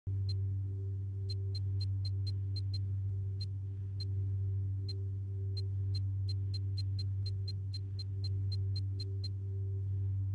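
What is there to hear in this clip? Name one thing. Game menu clicks tick in quick bursts.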